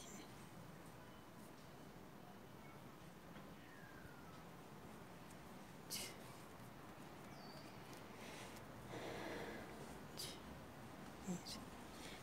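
Yarn rustles softly as a crochet hook works it.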